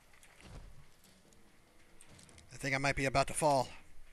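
A metal pick scrapes and clicks inside a lock.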